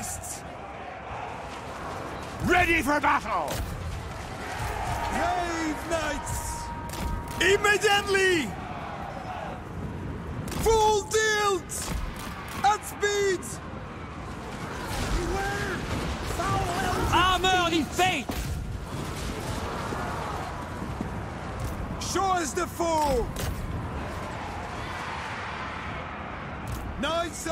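Weapons clash in a large battle.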